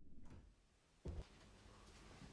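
A door bumps open with a low thud.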